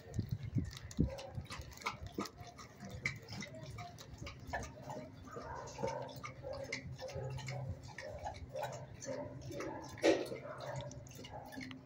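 A dog's claws click on a hard floor.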